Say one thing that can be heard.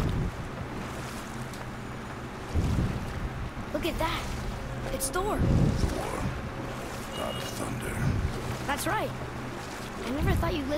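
Water laps gently around a small boat.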